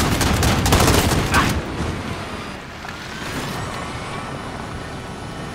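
A small motor whines steadily as a little vehicle drives along.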